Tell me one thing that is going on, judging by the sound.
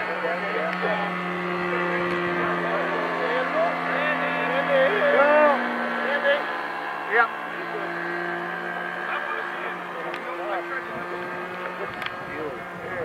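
A small engine drones steadily overhead.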